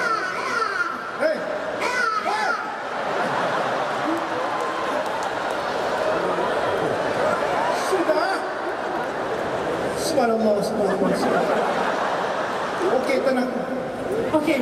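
A band plays rock music with electric guitars and keyboards.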